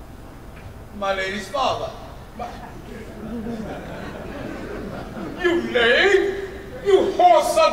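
A man speaks loudly and dramatically on a stage, in a large room with some echo.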